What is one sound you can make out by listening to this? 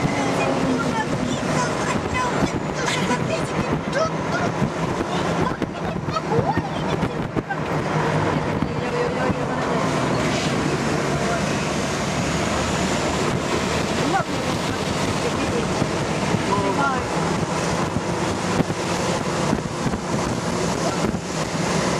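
Wind rushes past an open car window.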